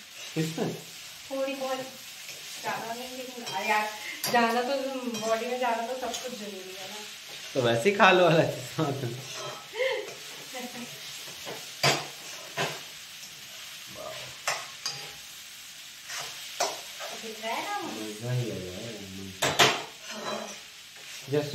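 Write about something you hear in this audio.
A spatula scrapes and clinks in a frying pan.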